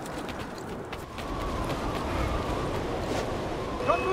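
Footsteps tread on stone stairs.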